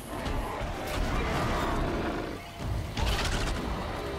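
A bow twangs as arrows are shot.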